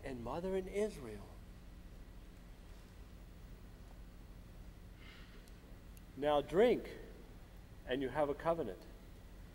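A man speaks slowly and expressively in short phrases, heard from a distance in a large hall.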